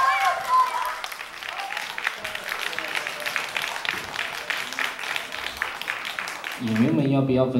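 An audience claps steadily.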